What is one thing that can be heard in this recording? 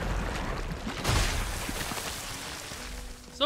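A heavy mass bursts and crumbles with a rushing crash.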